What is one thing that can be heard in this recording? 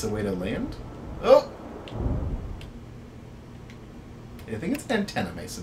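Two young men talk casually into a microphone.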